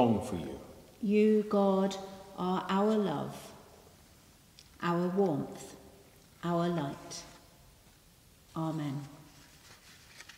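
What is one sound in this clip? An elderly man sings slowly in a large echoing hall.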